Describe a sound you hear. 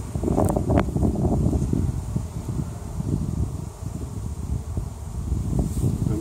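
Wooden frames knock and scrape as they are lifted from a hive.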